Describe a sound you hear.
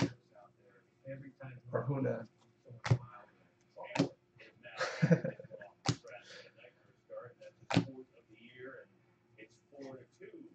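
Trading cards slide and flick against each other in hand.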